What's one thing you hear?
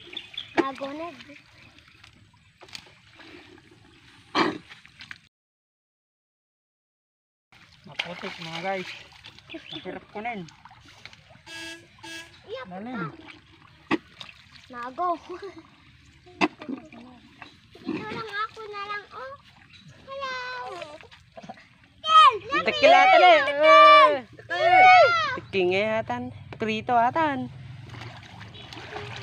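Hands squelch and splash in wet mud.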